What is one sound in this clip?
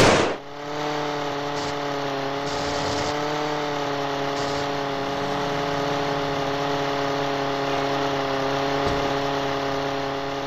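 A small model plane's engine buzzes steadily.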